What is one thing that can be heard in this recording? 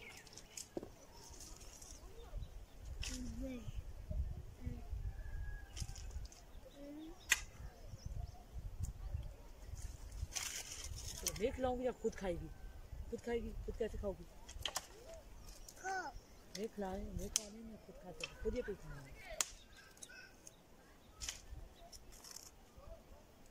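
A stick knocks and cracks against dry branches.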